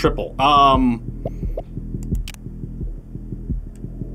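A game menu clicks as an option is chosen.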